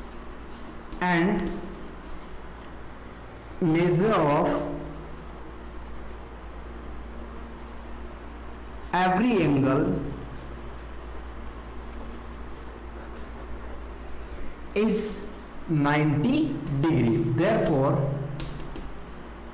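A man speaks in short phrases, explaining calmly in a slightly echoing room.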